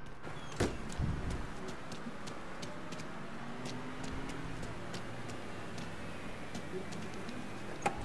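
Footsteps tap on a hard walkway.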